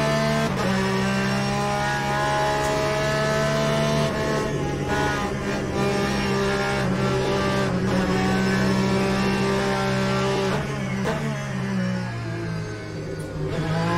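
A racing car engine roars loudly at high revs, dropping and climbing in pitch as the gears change.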